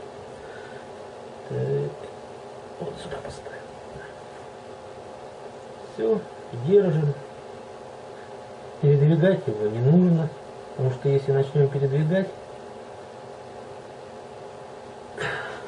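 A small tool rubs against leather.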